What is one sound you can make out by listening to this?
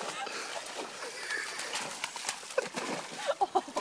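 A dog splashes through shallow water.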